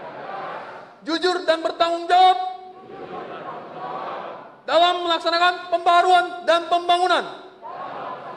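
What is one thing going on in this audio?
A man reads out loudly and forcefully through a microphone in a large echoing hall.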